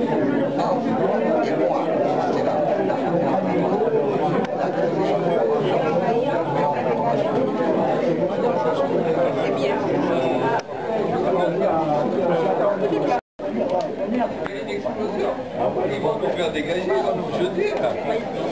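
A crowd of adults chatters in a busy, echoing room.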